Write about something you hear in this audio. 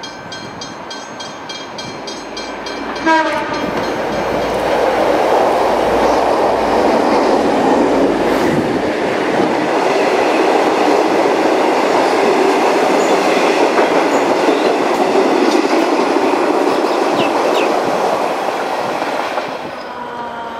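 A train approaches and rushes past loudly, rumbling and clattering on the rails.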